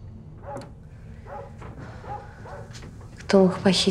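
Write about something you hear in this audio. A woman speaks softly nearby.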